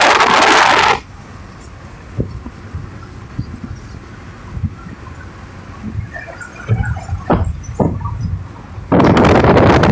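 Road noise hums inside the cabin of a moving car.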